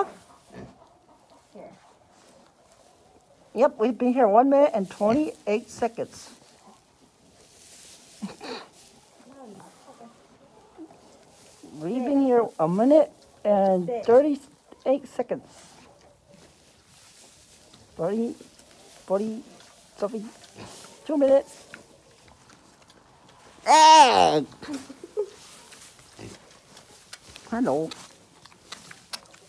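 A pig grunts close by.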